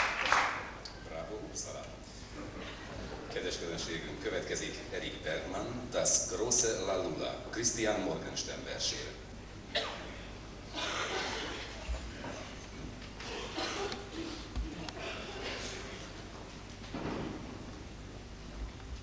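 A male choir sings softly in a large echoing hall.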